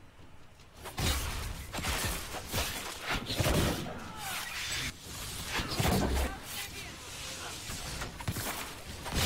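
Bowstrings twang as arrows fly.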